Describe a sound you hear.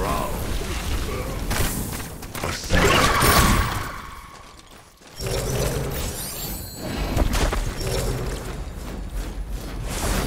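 Game weapons and spells crackle and blast in quick bursts.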